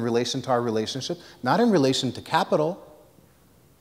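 A man speaks with animation into a microphone in an echoing room.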